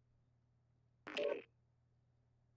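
A man speaks briefly into a headset microphone.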